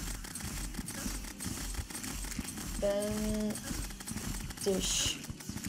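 Rapid magic shots zap and crackle in a video game.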